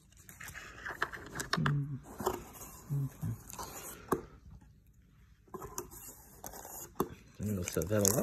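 Cardboard rustles and taps close by.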